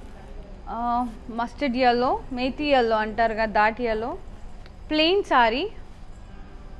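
A woman speaks brightly and with animation close to a microphone.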